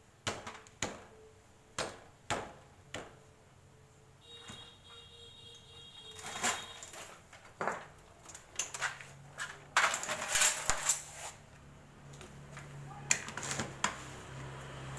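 Metal tools clink and clatter against each other.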